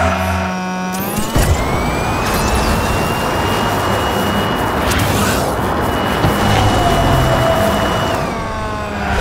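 A speed boost roars with a rising whoosh.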